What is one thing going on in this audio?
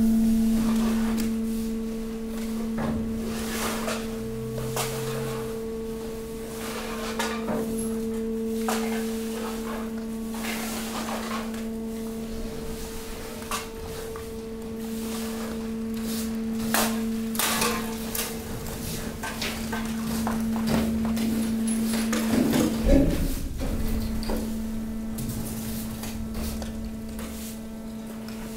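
A hydraulic motor hums steadily.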